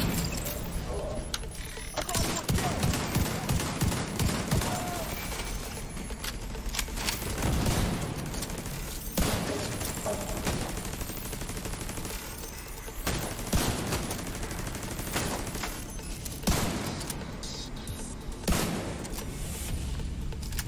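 Guns fire in sharp bursts of shots.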